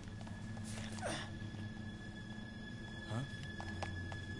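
A man speaks briefly in a low, tired voice.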